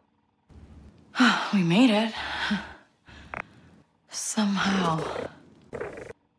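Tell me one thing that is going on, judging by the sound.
A young woman speaks softly and wearily.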